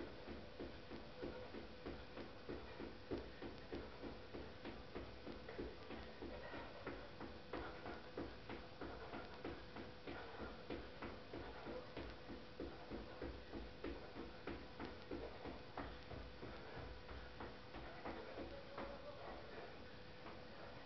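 Sneakers thump and scuff rhythmically on the floor.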